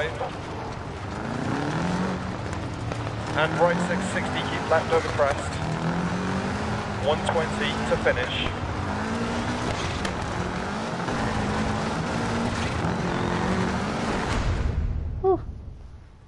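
A rally car engine revs hard, rising and falling through the gears.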